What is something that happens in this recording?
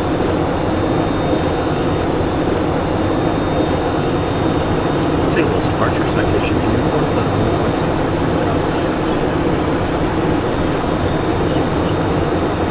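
Wind rushes loudly over the aircraft's windshield.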